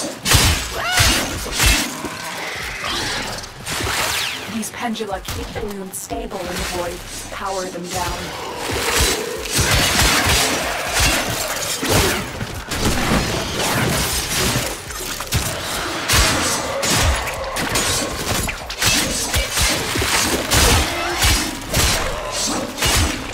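Explosions crack and crackle with sparks.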